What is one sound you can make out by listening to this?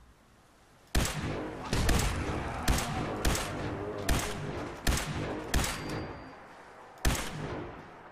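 Gunshots fire in a rapid series, each followed by a booming echo.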